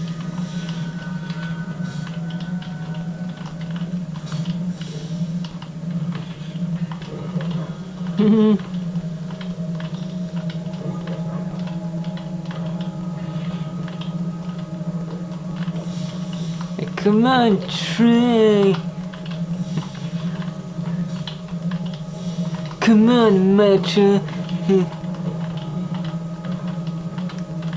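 Keys on a keyboard click and clatter.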